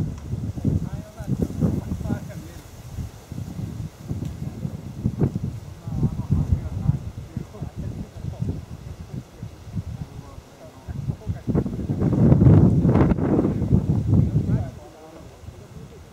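Strong wind buffets and rumbles outdoors.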